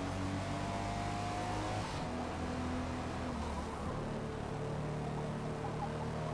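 A car engine drones steadily at high revs, shifting pitch as gears change.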